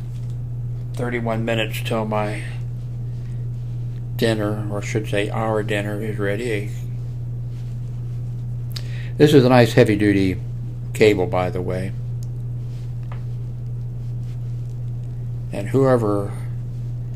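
An elderly man speaks calmly and close into a microphone, in short bursts with pauses.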